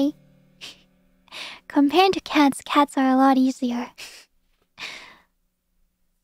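A young woman speaks playfully and expressively into a close microphone.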